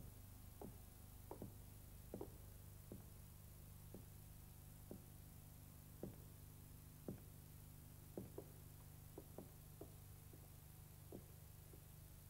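Footsteps knock on a hard floor as two men walk.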